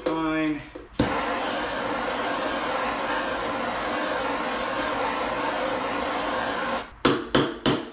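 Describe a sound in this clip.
A power tool whirs steadily.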